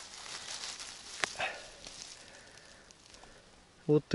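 A mushroom stem snaps as it is picked.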